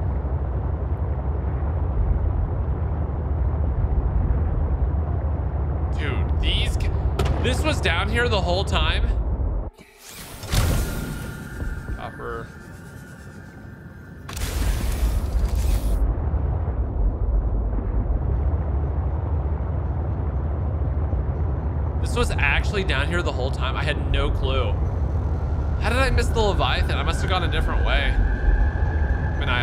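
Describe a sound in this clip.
A deep underwater rumble drones steadily.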